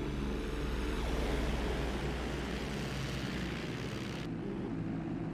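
Propeller planes drone overhead as they fly past.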